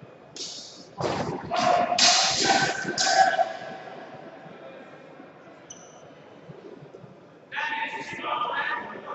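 Men shout loudly nearby in a large echoing hall.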